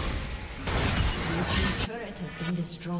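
A turret explodes with a loud crash.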